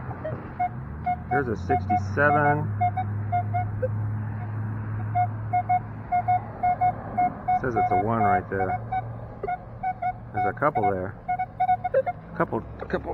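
A metal detector beeps in quick repeated pulses.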